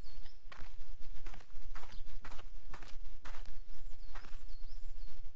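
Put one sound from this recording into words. A rake scrapes through dry soil in short, repeated strokes.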